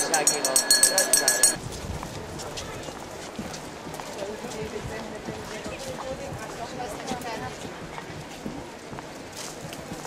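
Footsteps of a group walk on pavement outdoors.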